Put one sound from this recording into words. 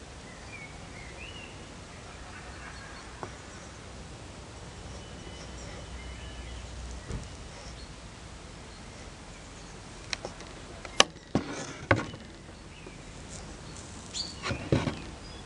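A hot tool scrapes lightly along a strip of wax.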